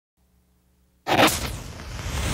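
A match strikes and flares up with a sudden burst.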